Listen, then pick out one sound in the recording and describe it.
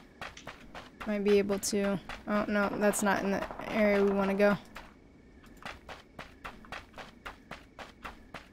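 Footsteps thud steadily on grass.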